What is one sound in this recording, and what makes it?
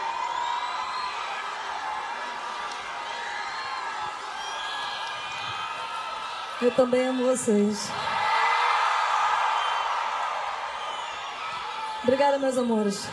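A large crowd cheers and sings along outdoors.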